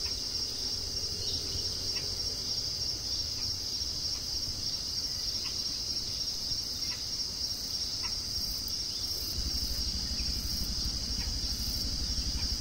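A light breeze rustles through dense foliage outdoors.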